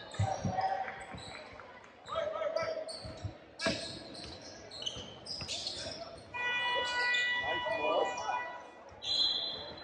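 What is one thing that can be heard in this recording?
Young players shout to each other across the court.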